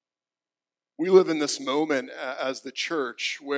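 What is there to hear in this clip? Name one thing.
A man speaks with animation through a microphone.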